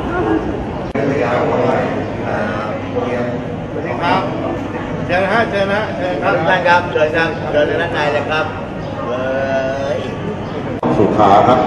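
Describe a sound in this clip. Men speak together close by, with animation.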